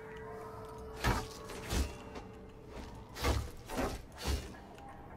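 A blade slashes and strikes with sharp thuds.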